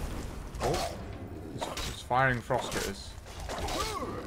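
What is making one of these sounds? A magic spell crackles and hisses.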